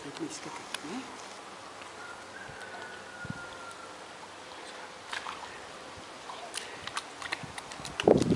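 Water sloshes as a man wades through a pool.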